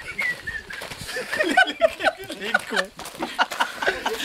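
Adult men talk and laugh loudly outdoors, close by.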